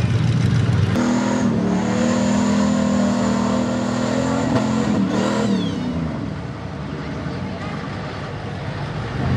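A truck engine roars loudly and revs while churning through mud.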